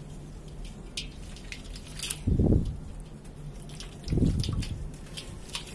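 Hands crumble and rub clumps of damp sand.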